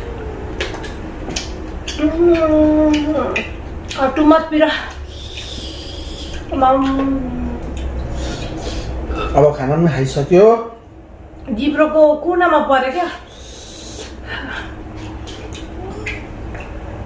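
A man smacks his lips while eating.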